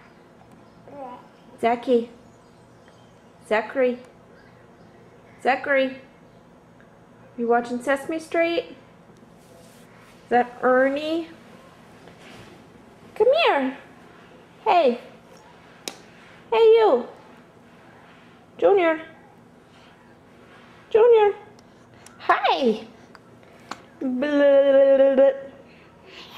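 A baby squeals and babbles in short, high bursts close by.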